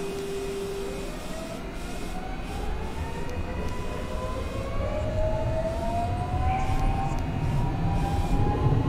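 An electric train's motors whine, rising steadily in pitch as it speeds up.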